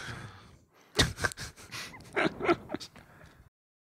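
Men laugh close by.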